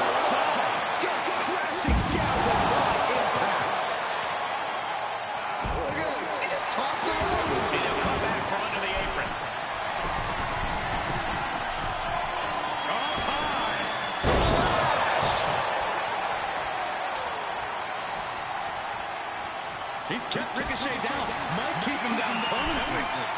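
A large crowd cheers and roars steadily in an arena.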